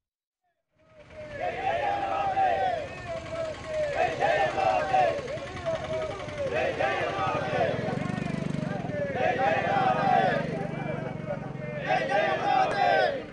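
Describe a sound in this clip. A crowd of men chants slogans loudly in unison.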